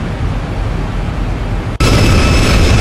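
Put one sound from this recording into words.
Jet engines hum in a steady, muffled drone from inside a cockpit.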